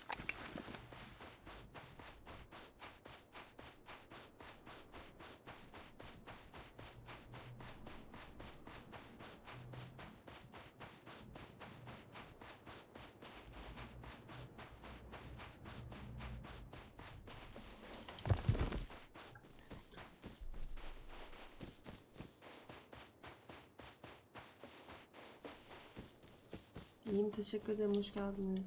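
Footsteps crunch quickly and steadily on sand.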